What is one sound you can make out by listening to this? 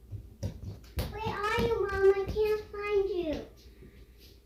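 A young girl speaks loudly and excitedly close by.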